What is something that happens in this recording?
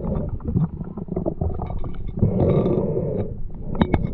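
A hand scrapes and digs in gritty sand underwater, with muffled knocks and clicks.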